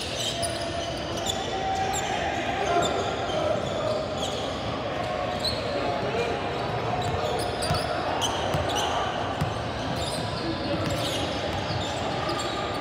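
A crowd chatters throughout a large echoing gym.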